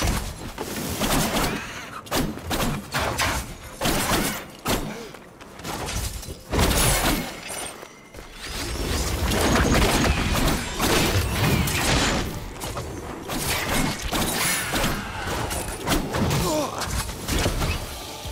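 Magic blasts burst with sharp, crackling impacts.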